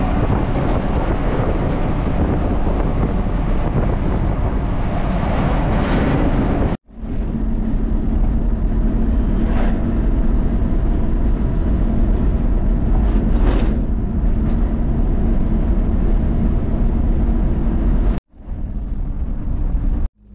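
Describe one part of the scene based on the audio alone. Wind rushes loudly past a moving car.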